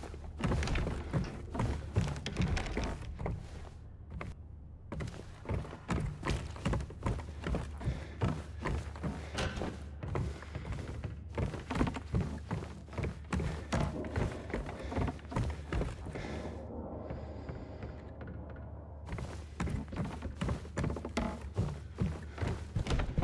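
Footsteps thud on wooden floors and stairs in a large echoing building.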